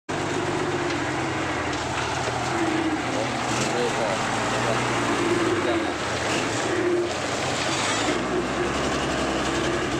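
A heavy truck engine roars and strains at low revs.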